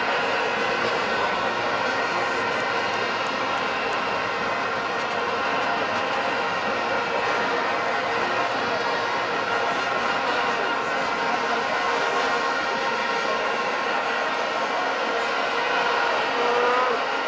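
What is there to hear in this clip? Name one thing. A large stadium crowd roars and chants steadily in a wide open space.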